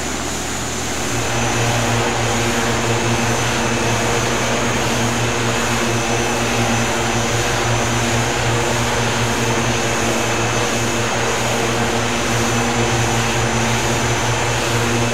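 Twin propeller engines drone loudly and steadily.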